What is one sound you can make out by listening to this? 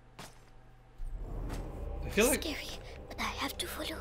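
A young man talks close to a headset microphone.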